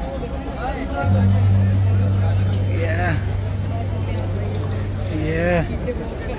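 Men talk nearby in a busy crowd.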